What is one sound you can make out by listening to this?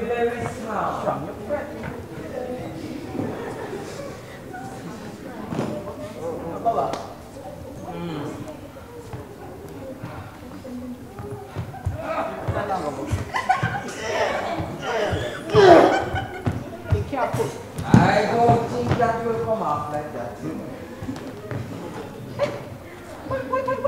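Young actors speak and shout with animation, heard from a distance in an echoing hall.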